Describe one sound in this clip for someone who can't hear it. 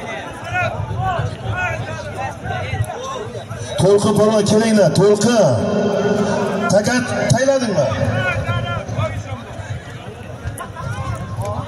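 A large crowd of men shouts and cheers outdoors.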